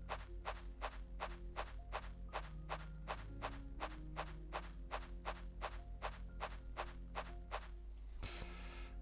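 Footsteps tap quickly and steadily on stone.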